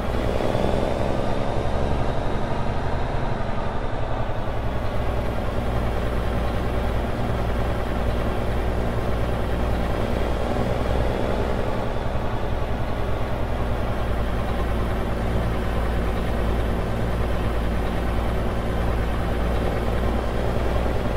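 A truck's diesel engine rumbles steadily at low speed.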